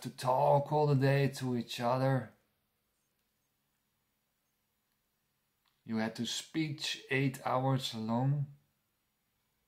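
A man speaks calmly and close to a microphone, pausing between phrases.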